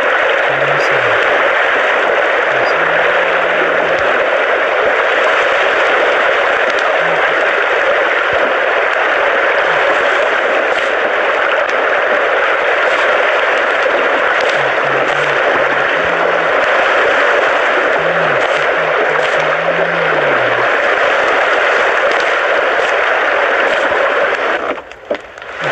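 Ocean water rushes and laps steadily.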